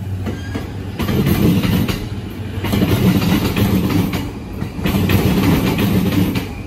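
Steel wheels of an electric commuter train rumble and clatter along the rails.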